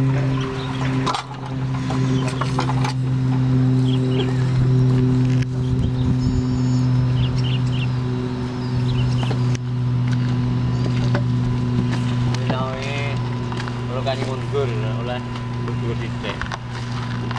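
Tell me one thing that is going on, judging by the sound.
A single-cylinder diesel engine of a two-wheel walking tractor idles.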